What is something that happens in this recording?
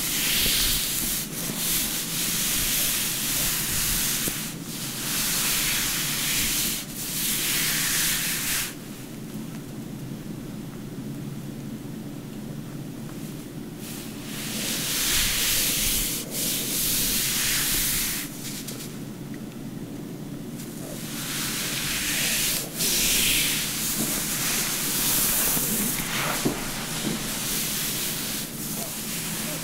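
Hands rub and brush softly over cloth, close up.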